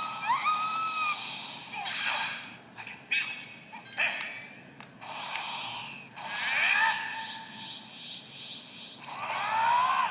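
Energy blasts whoosh and crackle from a small game speaker.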